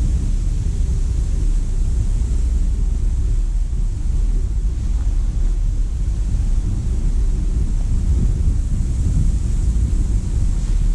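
Wind blows hard into the microphone outdoors.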